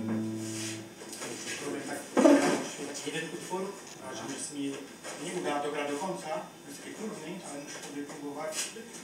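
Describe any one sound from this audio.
A man speaks casually into a microphone, heard through a loudspeaker.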